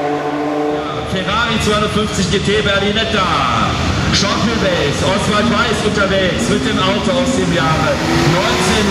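A sports car engine idles and rumbles nearby.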